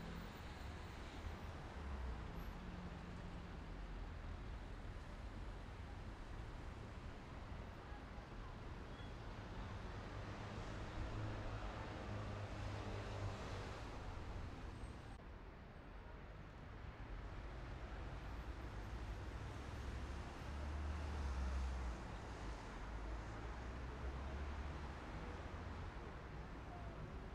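Road noise rumbles inside a moving car.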